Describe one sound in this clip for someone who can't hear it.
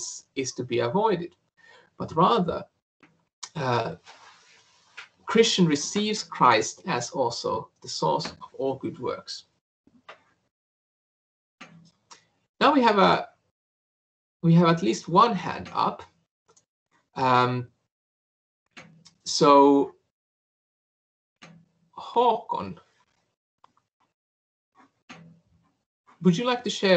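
A man speaks calmly over an online call, with pauses.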